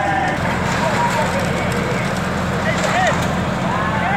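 Gravel pours and rattles onto the ground.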